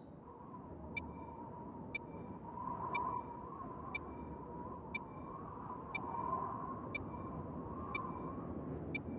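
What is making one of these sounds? A game countdown timer beeps once every second.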